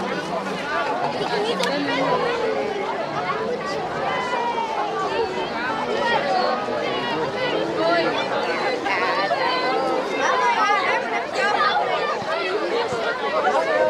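A crowd of men, women and children chatter and call out outdoors.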